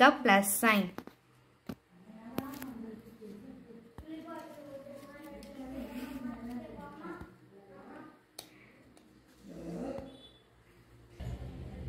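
Paper strips rustle softly as hands handle them.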